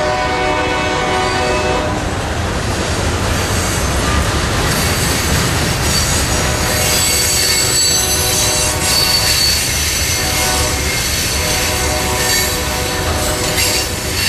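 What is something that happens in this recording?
Train wheels squeal and screech against the rails.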